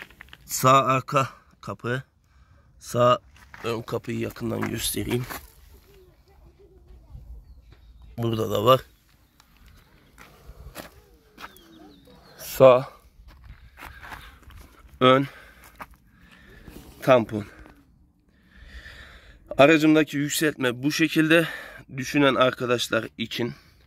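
A man talks calmly close to the microphone, with pauses.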